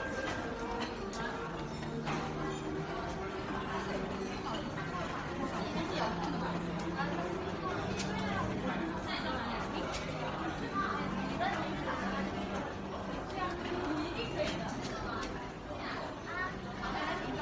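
Several people chatter nearby in a busy, echoing room.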